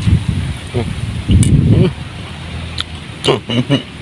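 A man chews food with his mouth close by.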